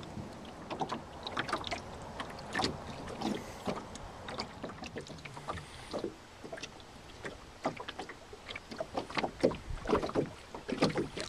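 Small waves slap against a boat's hull.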